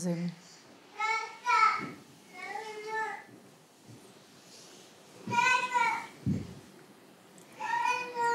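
A woman sings slow, drawn-out notes nearby.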